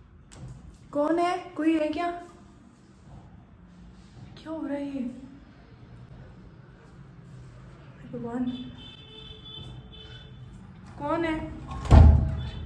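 A young woman speaks close by in short bursts, with pauses between.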